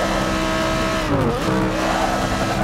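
A racing car engine drops sharply in pitch and then climbs again.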